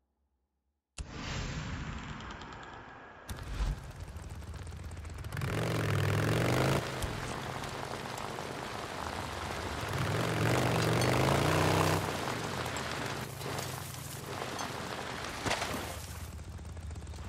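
A motorcycle engine roars and revs as the bike rides over snow.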